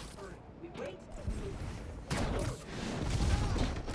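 A heavy landing thumps on a rooftop.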